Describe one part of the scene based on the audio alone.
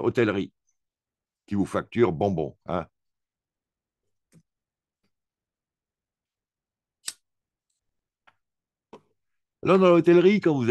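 A man speaks calmly close to a microphone, in short bursts with long pauses.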